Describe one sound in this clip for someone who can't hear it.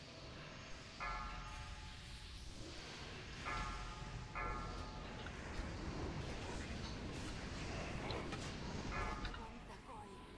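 Bright magical chimes ring out briefly several times.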